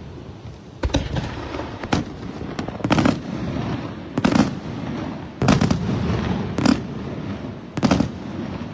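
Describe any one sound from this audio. Fireworks boom and bang overhead, one burst after another.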